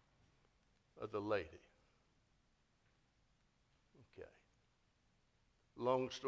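An elderly man speaks calmly into a microphone in a large echoing hall, with pauses.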